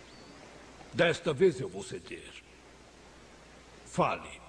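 An elderly man speaks sternly and slowly.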